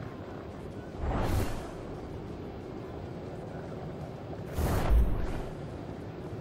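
A whooshing rush bursts past.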